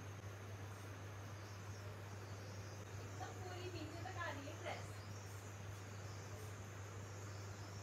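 A plastic comb scrapes through hair.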